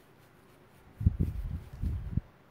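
A brush scrubs and scrapes across paper in short strokes.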